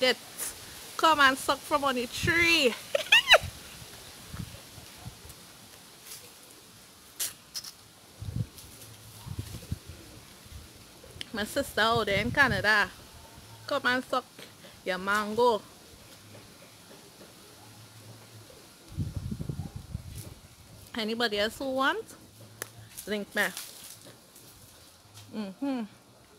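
A woman talks with animation close to the microphone.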